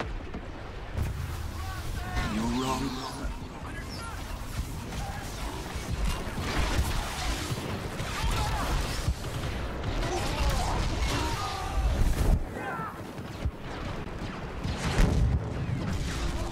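Explosions rumble low and heavy.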